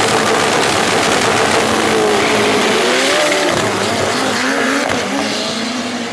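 Race cars roar as they accelerate hard down the track.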